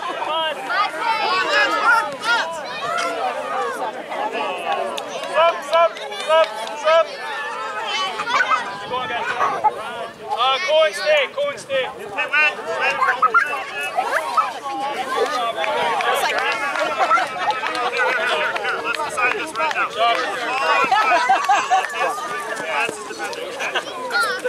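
Many young children shout and chatter outdoors.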